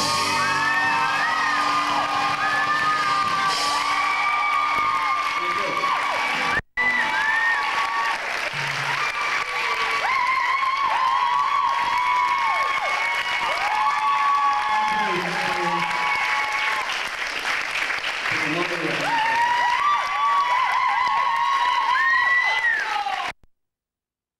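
A young man sings through a microphone.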